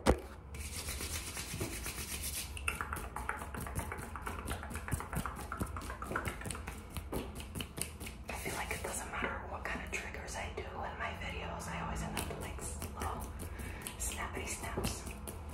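A young woman talks close to the microphone, lively and smiling.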